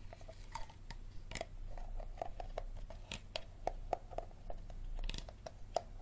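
A plastic bottle crinkles and crackles as hands squeeze it.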